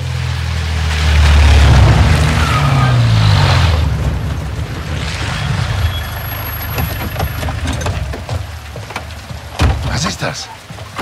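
A vehicle engine rumbles and revs as it approaches.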